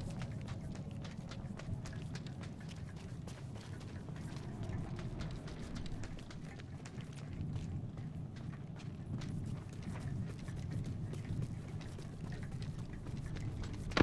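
Quick footsteps run over dry ground.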